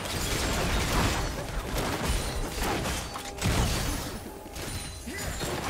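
Game spell effects crackle and burst during a hectic fight.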